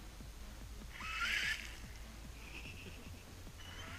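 A small electric motor whirs briefly as a toy car pulls away through wet mud.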